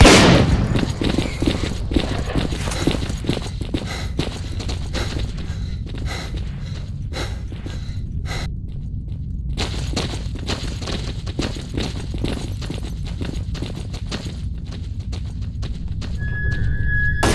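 Footsteps tread steadily on hard ground.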